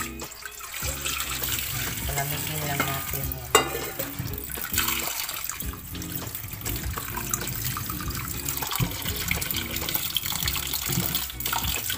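Tap water runs and splashes into a strainer.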